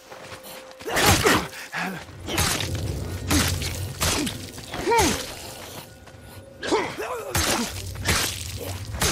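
Heavy blows thud and slash in a close fight.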